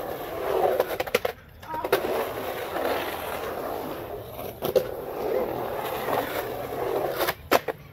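Skateboard wheels clack against a concrete edge.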